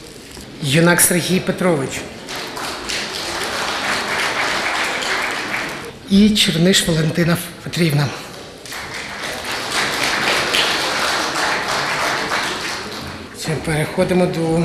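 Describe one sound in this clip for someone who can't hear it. A man speaks into a microphone, heard over loudspeakers in an echoing hall.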